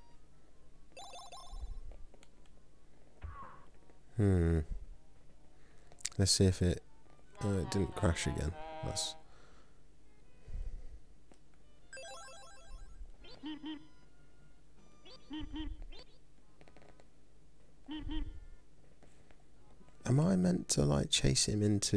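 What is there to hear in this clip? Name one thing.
Short cartoon sound effects chirp, boing and whoosh.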